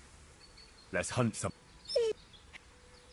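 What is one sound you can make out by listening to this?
A man calls out a short command to a dog.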